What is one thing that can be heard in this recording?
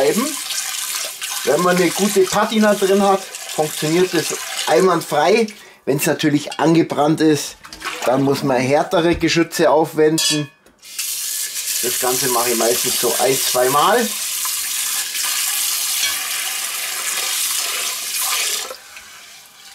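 Tap water runs and splashes into a metal pot.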